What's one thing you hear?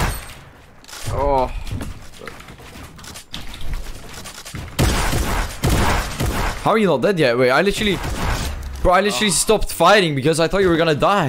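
A young man speaks close into a headset microphone.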